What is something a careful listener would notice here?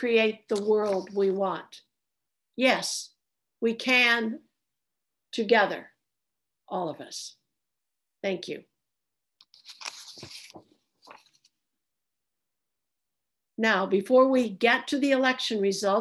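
An elderly woman speaks calmly over an online call, in short phrases with pauses.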